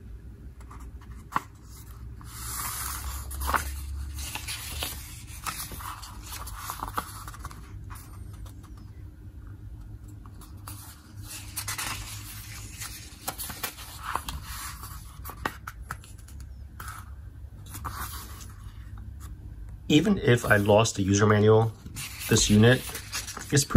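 Paper pages rustle and turn close by.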